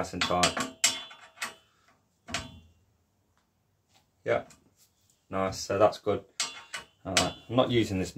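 Metal pliers clack against a bicycle part.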